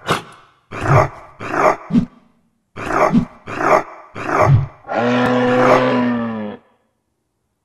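A wolf snarls and growls fiercely.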